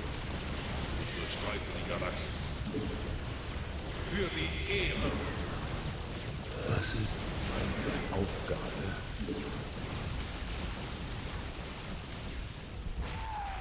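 Energy weapons zap and crackle in a battle.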